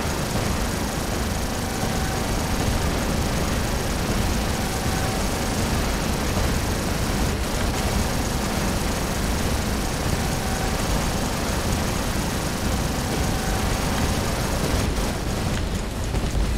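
Heavy machine guns fire in rapid, rattling bursts.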